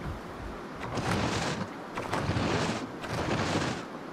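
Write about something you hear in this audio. A creature tears noisily at brittle plants in several rough bursts.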